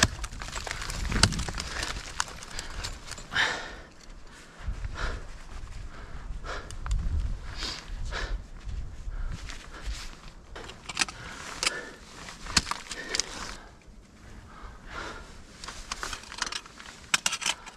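Ice axes strike and chip into hard ice with sharp cracks.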